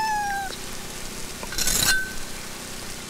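A knife scrapes out of a wooden block.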